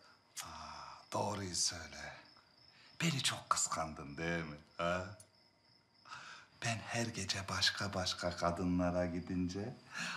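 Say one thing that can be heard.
A middle-aged man speaks and chuckles close by.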